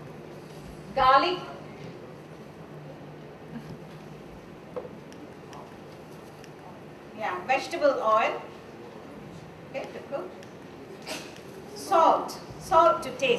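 A woman speaks clearly to an audience in short bursts.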